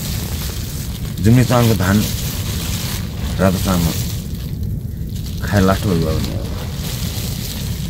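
A plastic bag rustles as hands handle it.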